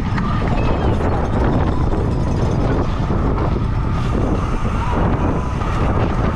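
Bicycle tyres hum on pavement.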